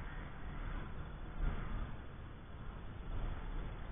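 A car engine drones in the distance.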